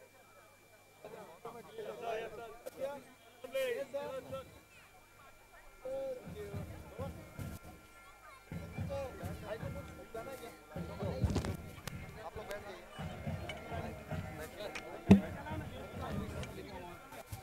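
A crowd of men chatter loudly nearby.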